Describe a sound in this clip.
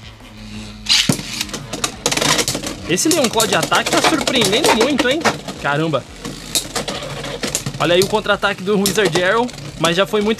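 Spinning tops clash with sharp clacks.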